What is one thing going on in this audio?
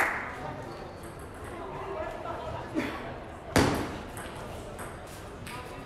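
A table tennis ball clicks back and forth between paddles and a table, echoing in a large hall.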